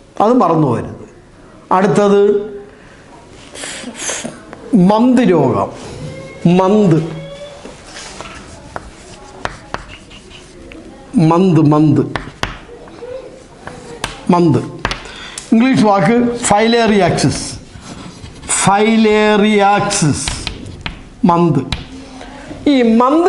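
A middle-aged man speaks calmly and clearly, as if teaching, close to a microphone.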